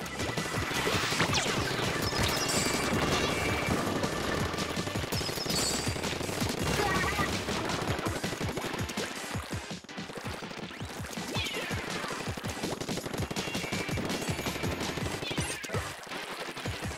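A game weapon sprays ink in rapid, wet splattering bursts.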